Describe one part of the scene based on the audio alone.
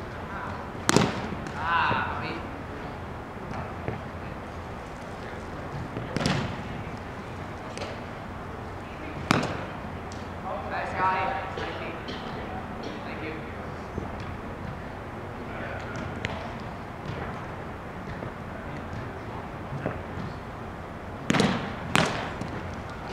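A ball smacks sharply off a small net, echoing in a large hall.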